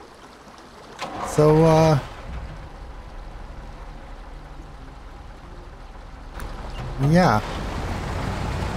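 A heavy truck engine rumbles low and steady.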